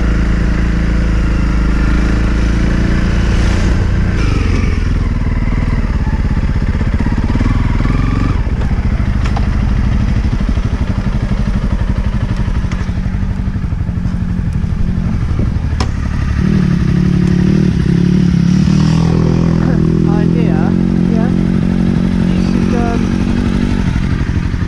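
A motorcycle engine rumbles close by, revving and idling.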